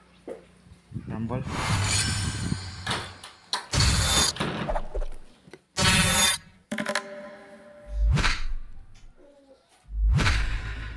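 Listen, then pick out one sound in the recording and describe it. Whooshing and crashing game effects sound in bursts as cards attack.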